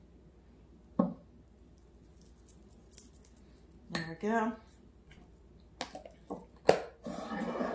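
A spoon clinks against a plastic container.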